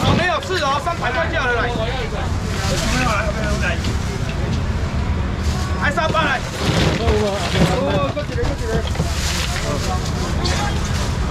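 A busy crowd chatters all around.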